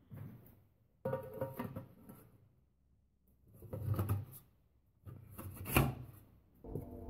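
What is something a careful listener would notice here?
A metal flap clanks as a hand moves it.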